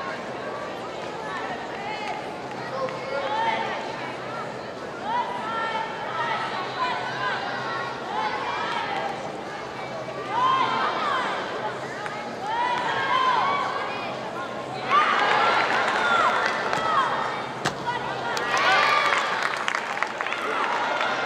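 A crowd murmurs and cheers in a large echoing arena.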